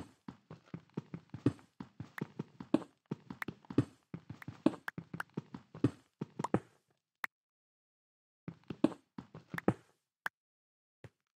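A pickaxe chips rapidly at stone blocks, which crack and crumble.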